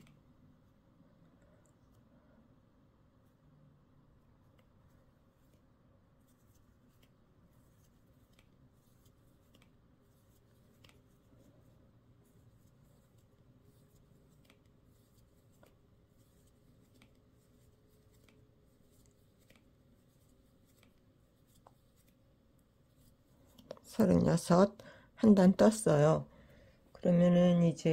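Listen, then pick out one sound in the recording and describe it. A metal crochet hook pulls yarn through stitches.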